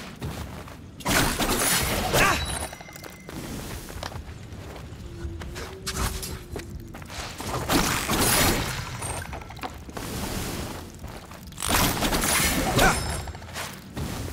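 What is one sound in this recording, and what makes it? Heavy metal blows crash and rumble.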